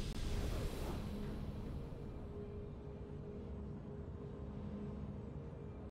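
A triumphant victory fanfare plays with sustained tones.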